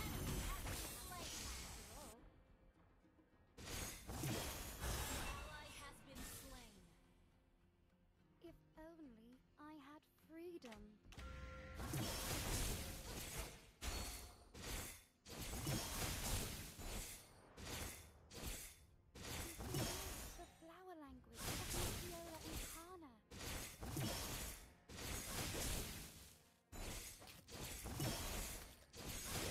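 Video game magic spell effects whoosh and crackle in a fight.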